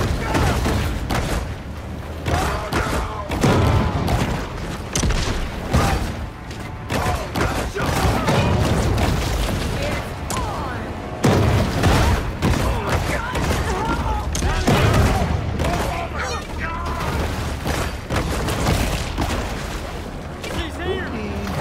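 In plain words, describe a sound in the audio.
Water splashes and churns as a large creature thrashes through it.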